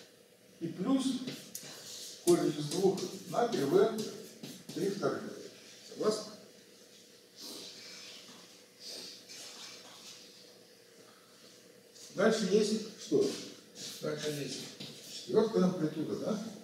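An elderly man speaks calmly, as if lecturing.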